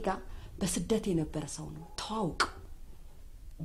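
A young woman speaks indoors, close by.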